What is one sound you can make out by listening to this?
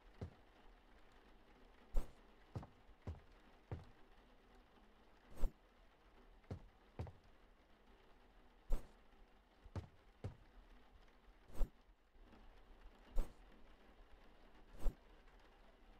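Food items are placed down with short, soft thuds.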